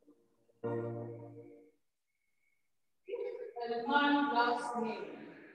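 A woman sings through a microphone in a large echoing hall.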